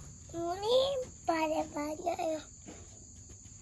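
A young child speaks in a high voice close by.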